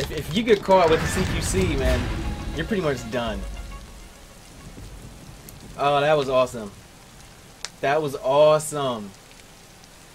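A young man talks with animation into a nearby microphone.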